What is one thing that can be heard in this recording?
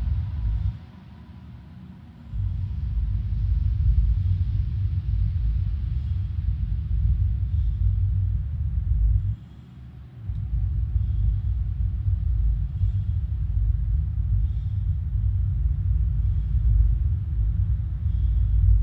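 A spaceship engine rumbles deeply, cutting out briefly twice.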